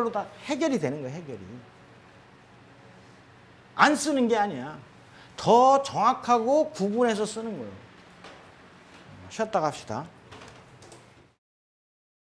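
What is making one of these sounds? An older man lectures with animation through a microphone.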